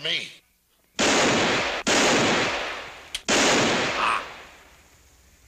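Gunshots ring out loudly and echo.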